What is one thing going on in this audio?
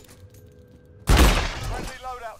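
A gun fires loudly.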